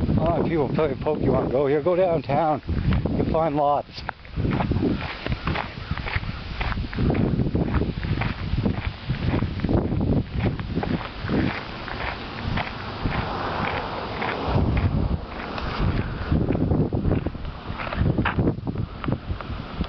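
Wind blows and rustles through leafy trees outdoors.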